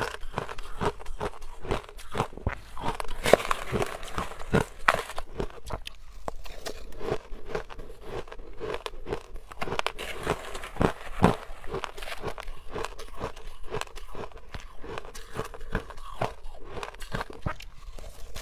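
A metal spoon scrapes through ice in a plastic bowl.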